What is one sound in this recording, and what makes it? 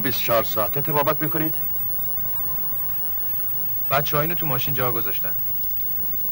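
An older man speaks firmly and close by.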